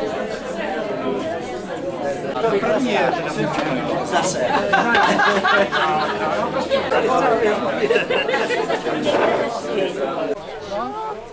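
A crowd of older men and women chatter loudly indoors.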